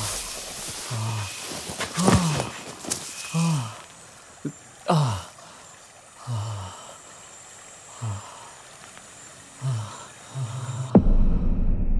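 A man gasps and groans in pain, breathing heavily.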